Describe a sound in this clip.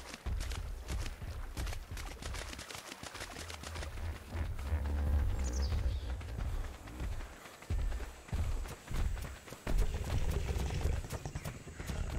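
Footsteps patter quickly over ground and grass.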